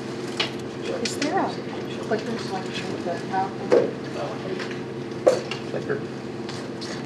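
A woman speaks calmly in a large room with some echo.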